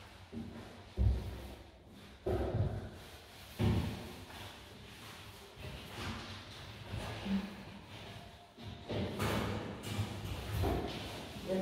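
Wooden panels knock and thud.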